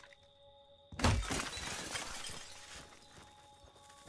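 Glass shatters as a window is smashed.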